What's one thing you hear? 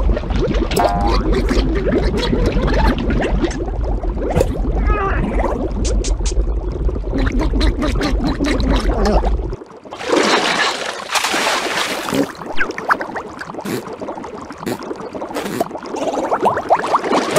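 A cartoon creature babbles and squeals in a high, comical voice.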